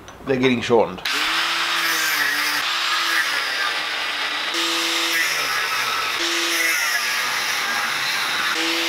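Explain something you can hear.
An angle grinder whines loudly as it cuts into steel.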